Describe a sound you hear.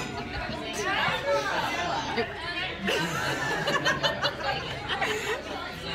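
A second young woman talks excitedly close by.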